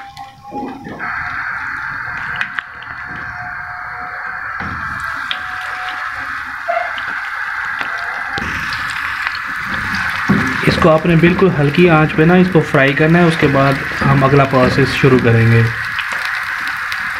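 Hot oil sizzles and crackles steadily as meat fries in a pan.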